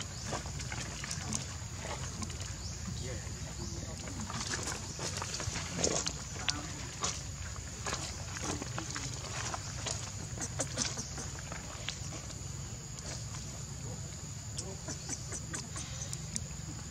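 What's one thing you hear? A baby monkey squeaks and cries close by.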